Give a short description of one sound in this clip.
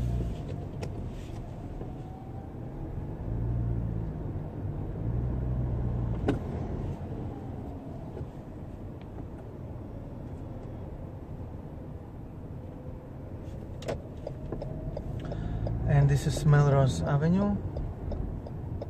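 A car engine hums steadily over tyre noise.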